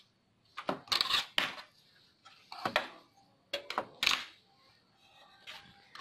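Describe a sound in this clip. A circuit board clacks as it is set down on a table.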